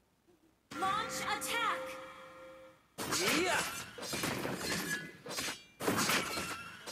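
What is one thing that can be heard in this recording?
Magical whooshes and chimes ring out in quick bursts.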